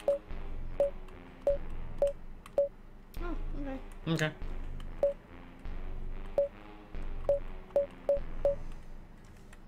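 Short electronic beeps blip quickly, one after another.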